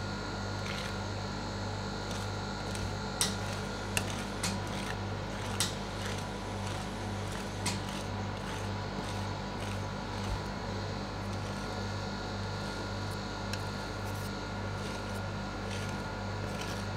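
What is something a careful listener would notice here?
Metal spatulas scrape and tap against a cold metal plate.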